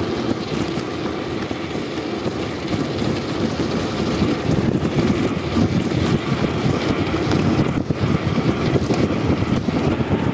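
Bicycle tyres hum on rough pavement.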